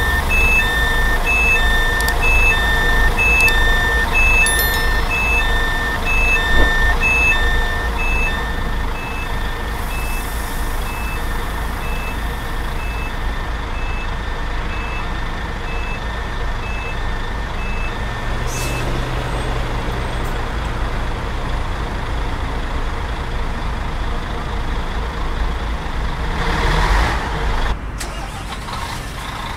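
A large bus engine rumbles steadily.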